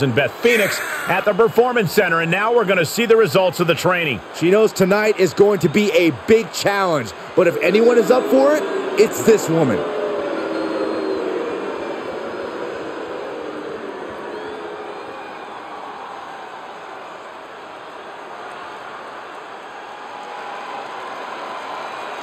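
A large crowd cheers and murmurs in a big echoing arena.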